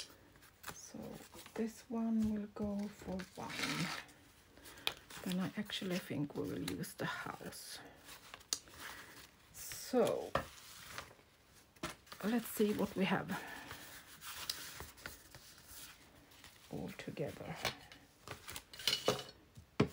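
Paper rustles and crinkles as it is handled up close.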